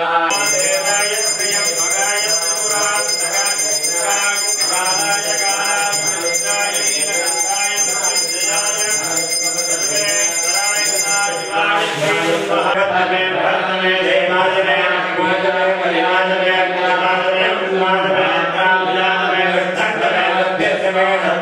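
Several men chant steadily together, close by.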